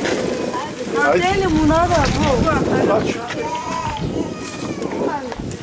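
A crowd of women chatter close by, outdoors.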